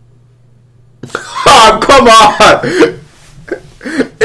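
A young man laughs loudly and excitedly close to a microphone.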